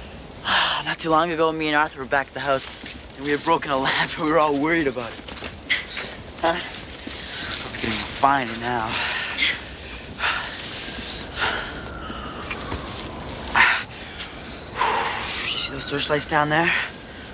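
A young woman speaks with emotion nearby.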